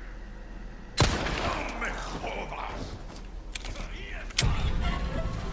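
A pistol fires with a loud bang.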